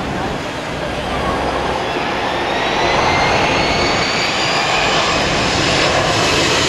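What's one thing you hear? A jet airliner roars loudly as it comes in to land, its whine rising and growing louder.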